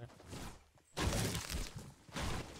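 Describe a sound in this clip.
A pickaxe strikes stone with sharp knocks.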